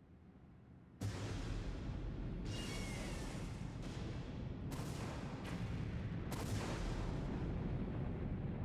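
Explosions burst and rumble on an aircraft.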